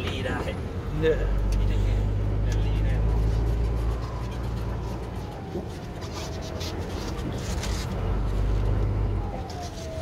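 A diesel engine revs up loudly.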